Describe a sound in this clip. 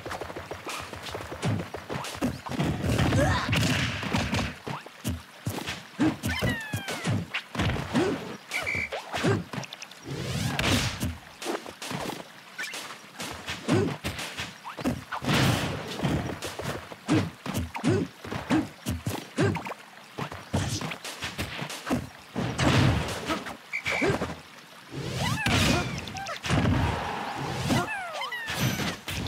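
Fighting game hits, whooshes and blasts crack again and again.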